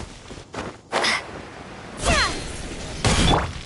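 A sparkling magical shield bursts into being.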